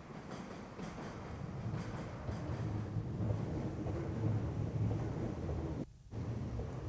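A train rumbles across a bridge overhead.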